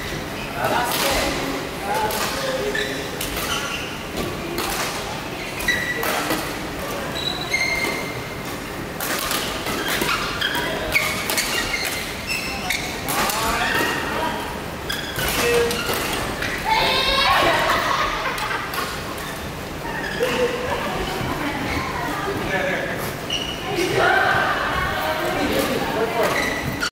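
Shuttlecocks are struck sharply with rackets, echoing in a large hall.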